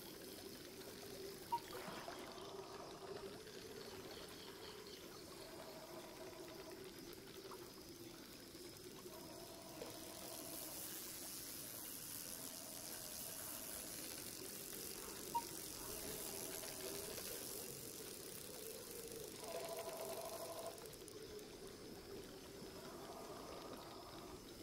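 Calm water laps softly outdoors.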